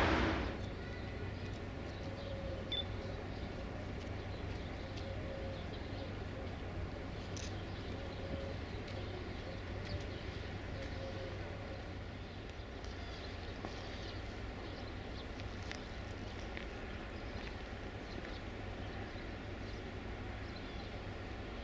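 Train wheels click now and then over rail joints.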